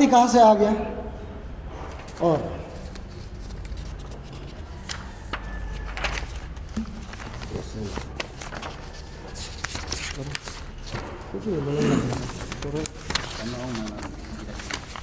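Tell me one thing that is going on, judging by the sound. A young man speaks through a microphone in a calm, measured voice.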